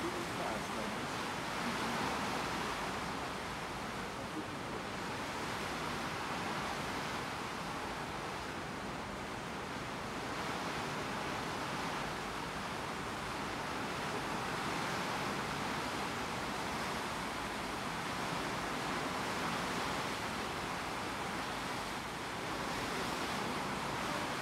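Water rushes steadily along a ship's hull.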